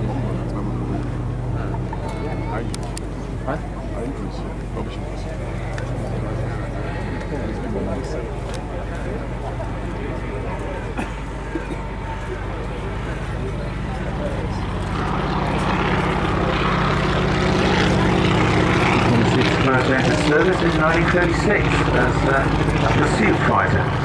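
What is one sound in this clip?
A propeller plane's engine drones and grows louder as the plane flies past.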